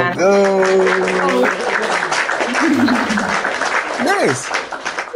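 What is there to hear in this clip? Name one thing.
A young woman laughs through an online call.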